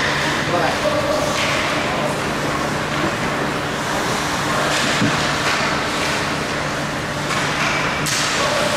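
Young children shout across a large echoing rink.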